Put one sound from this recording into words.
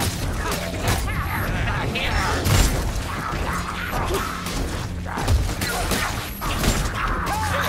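Creatures snarl and shriek as they attack.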